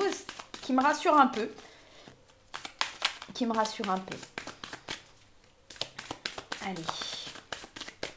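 Cards riffle and slap softly as a deck is shuffled by hand.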